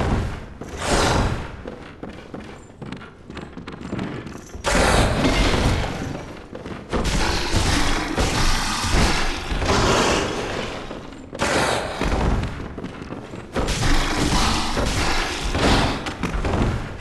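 A large beast snarls and roars.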